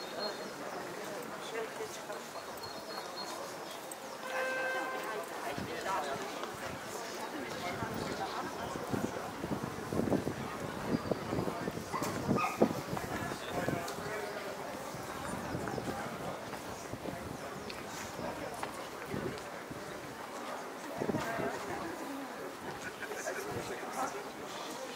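Footsteps shuffle on cobblestones as a crowd walks past.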